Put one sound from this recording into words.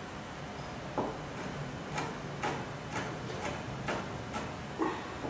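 A knife chops on a cutting board with quick, sharp taps.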